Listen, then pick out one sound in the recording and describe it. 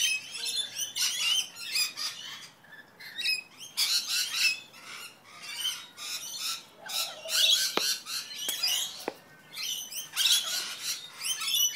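Several parrots screech and chatter loudly close by.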